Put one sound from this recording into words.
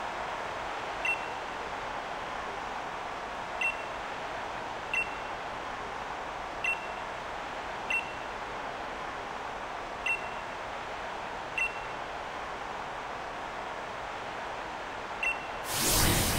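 A short soft chime sounds each time a line of dialogue advances.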